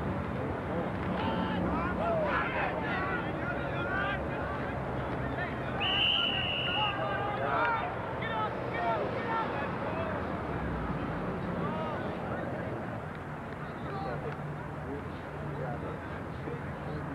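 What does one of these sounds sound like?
A crowd of players and spectators chatters and calls out outdoors.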